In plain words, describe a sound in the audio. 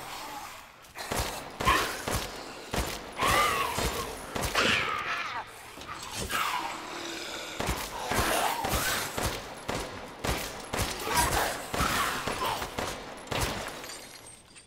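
Gunshots fire sharply in quick bursts.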